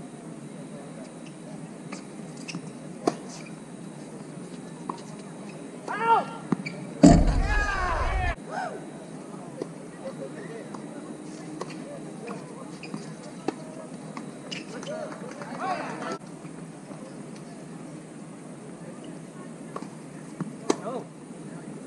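Tennis balls are struck with rackets with sharp pops, outdoors.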